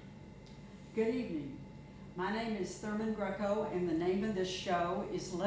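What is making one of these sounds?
An elderly woman speaks calmly and clearly, close by.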